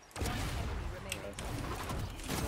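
Thrown blades whoosh through the air.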